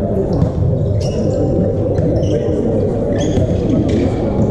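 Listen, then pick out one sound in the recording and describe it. Players' sneakers squeak on an indoor court floor in a large echoing hall.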